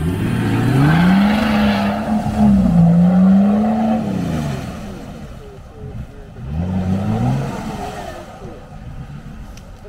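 Wheels splash through muddy water.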